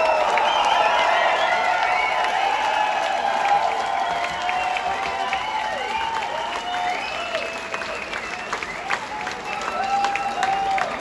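A large crowd cheers and shouts loudly in an echoing hall.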